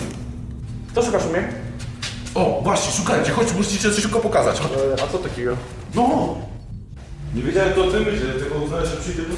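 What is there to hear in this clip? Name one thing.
A man talks loudly and with animation up close.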